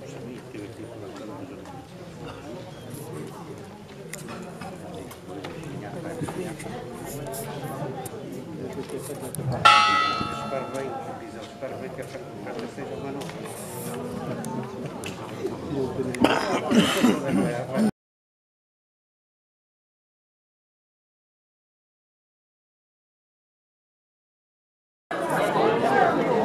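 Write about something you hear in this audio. A crowd of men and women chat outdoors at a distance.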